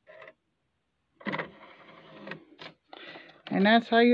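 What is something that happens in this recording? A disc clatters softly as it is lifted out of a player's tray.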